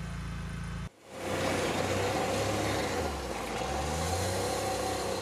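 A vehicle drives fast over gravel with a rushing roar.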